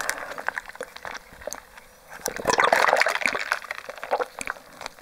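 A young woman sips and slurps through a straw, close to a microphone.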